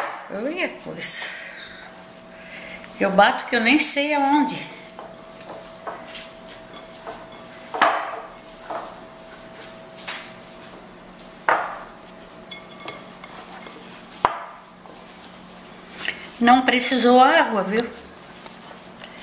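Hands squish and knead soft dough.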